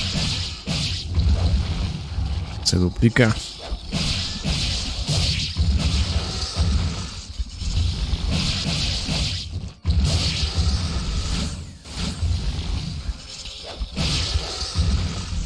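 Game combat sounds of slashing and fleshy hits play loudly.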